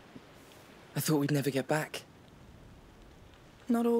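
A man speaks close into a microphone.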